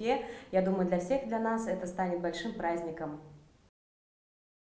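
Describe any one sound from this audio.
A young woman speaks calmly and warmly, close to a microphone.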